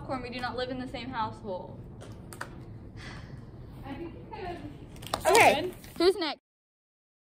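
Young girls talk and laugh close by, with animation.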